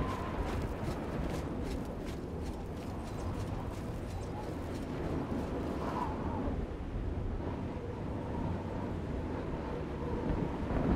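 Lava rumbles and bubbles with a low, steady roar.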